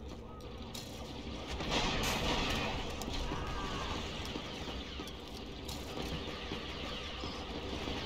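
Boots run across a hard floor.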